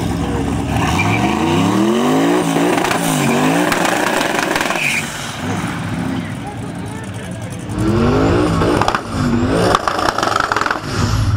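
A car engine revs up and down sharply, again and again.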